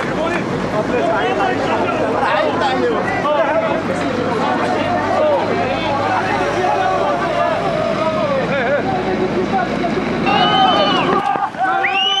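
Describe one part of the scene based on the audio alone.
A crowd of men talks and shouts loudly nearby, outdoors.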